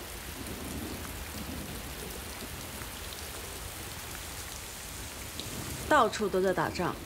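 Rain pours steadily outside.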